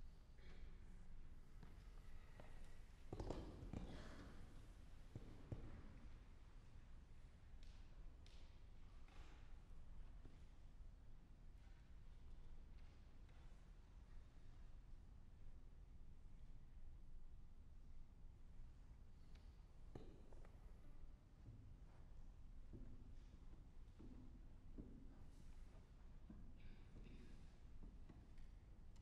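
A harp is plucked softly in a large echoing hall.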